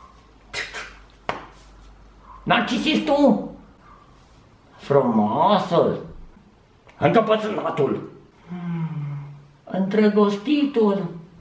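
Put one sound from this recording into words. A man speaks with animation close to a microphone, changing his voice playfully.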